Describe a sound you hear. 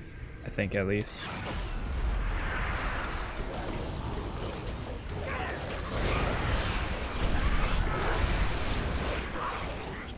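Fantasy combat sounds clash and whoosh with spell effects.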